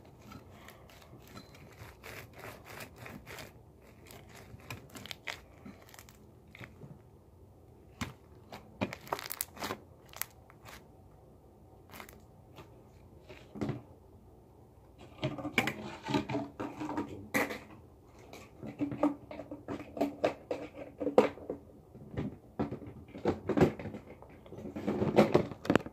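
Slime squishes and crackles between hands.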